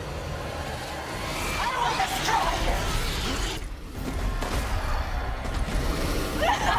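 A monstrous creature roars and screeches loudly.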